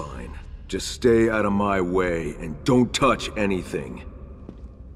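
A man speaks curtly and firmly.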